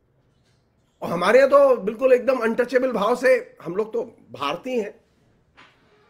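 An elderly man speaks with animation over an online call.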